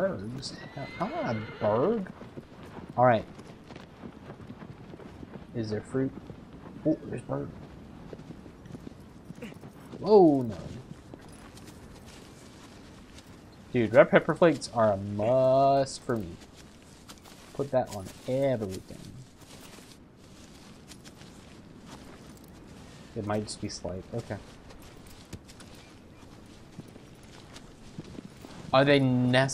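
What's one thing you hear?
A man talks casually into a microphone, close up, in short bursts.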